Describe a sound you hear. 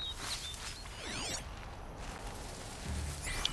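A shimmering electronic scan sweeps up and down in pitch.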